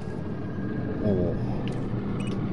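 An electronic lock panel gives a short denial tone.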